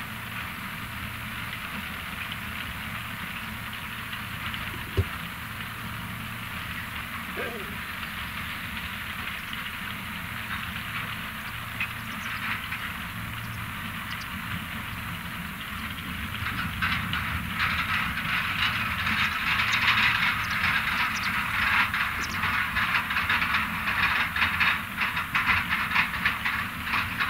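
Beets clatter and rumble along a loading conveyor.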